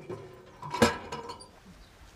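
A metal shell clanks as it slides into a gun breech.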